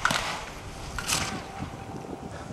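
Snow sprays loudly as a skier skids to a stop.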